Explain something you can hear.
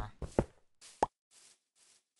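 A stone block breaks with a short crunching knock.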